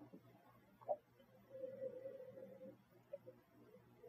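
A man sips and slurps wine.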